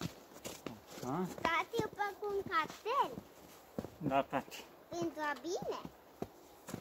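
A young child talks with animation nearby.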